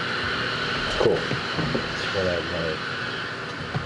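A man talks briefly into a close microphone.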